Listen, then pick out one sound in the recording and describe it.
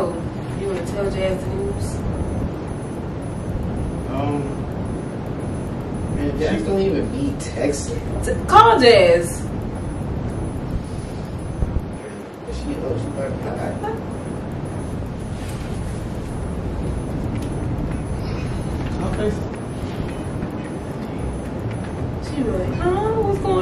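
Young men talk and joke casually nearby.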